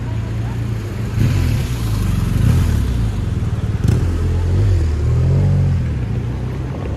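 A motorbike engine rumbles as it passes close by.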